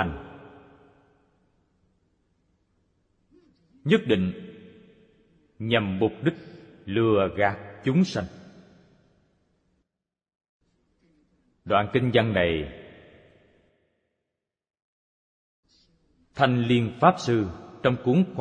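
An elderly man speaks calmly and slowly into a microphone, with long pauses and a slight echo.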